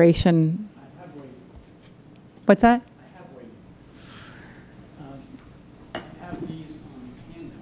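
A woman speaks through a microphone in a large room.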